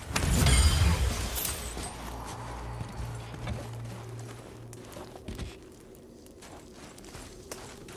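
Heavy footsteps crunch on a gritty stone floor.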